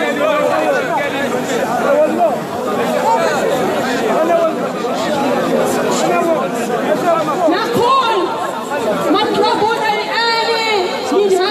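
A crowd of men and women chants and shouts loudly nearby.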